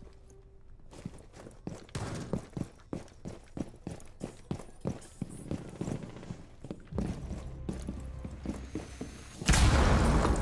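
Footsteps thud quickly on hard floors and stairs.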